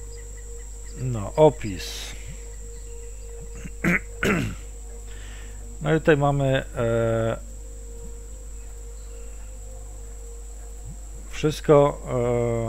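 A man speaks in short bursts into a headset microphone, close and casual.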